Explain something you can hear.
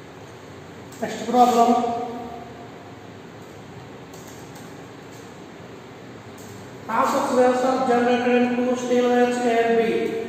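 An adult man speaks clearly and at a steady pace, close by.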